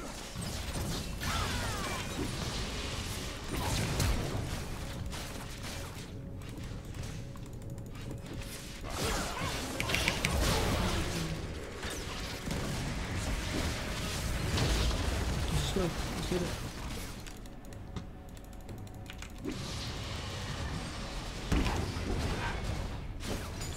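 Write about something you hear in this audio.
Game spell effects whoosh and clash in quick bursts.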